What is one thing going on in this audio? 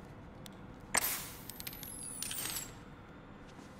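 A small device whirs and clicks.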